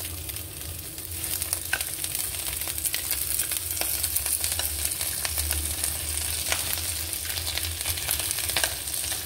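Vegetables sizzle softly in a hot pan.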